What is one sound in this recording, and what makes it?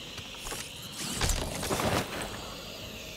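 A short magical whoosh and chime sound as an item is picked up.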